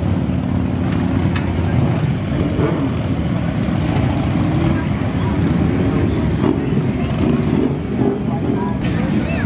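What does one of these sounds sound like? A crowd murmurs in the background outdoors.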